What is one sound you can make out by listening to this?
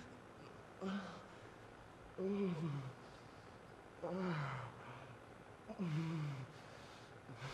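A woman speaks softly and close by, in short breathy phrases.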